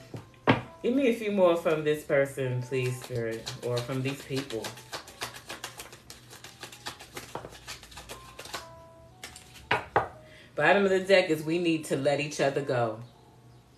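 Cards shuffle and riffle in a woman's hands.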